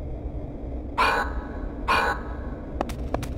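A game menu beeps as options are chosen.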